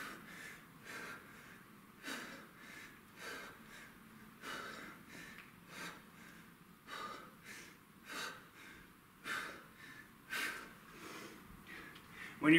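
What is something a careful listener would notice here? A man exhales sharply in a steady rhythm.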